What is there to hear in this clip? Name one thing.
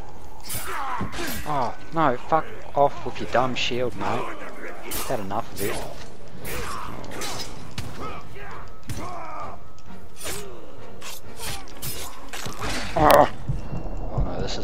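Creatures grunt and shriek in pain.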